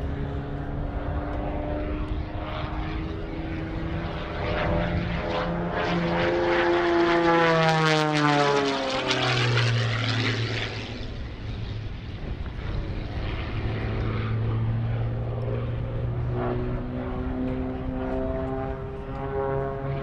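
A propeller plane's engine drones overhead, its pitch dropping sharply as it sweeps past close by.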